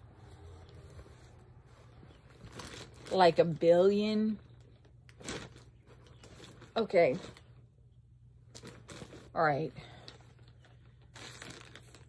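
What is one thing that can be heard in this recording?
Fabric rustles as a woman handles soft bags.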